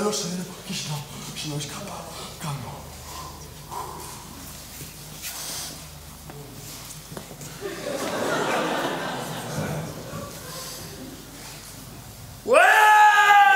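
A young man speaks loudly in an echoing hall.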